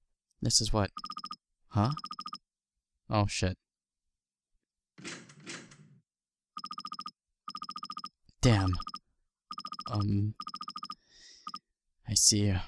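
Rapid electronic blips chatter in short bursts as game dialogue text types out.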